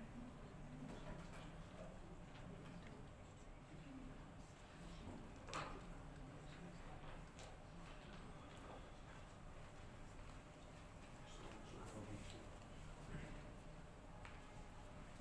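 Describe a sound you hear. Young men murmur quietly among themselves.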